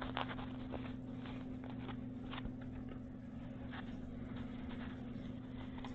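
A cat bites and scratches at a crinkly fabric toy.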